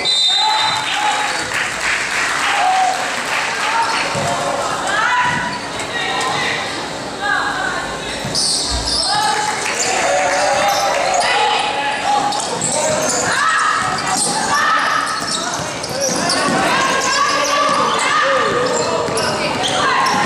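Young players and onlookers call out and chatter in the echoing hall.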